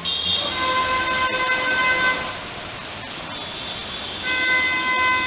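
Rain pours steadily.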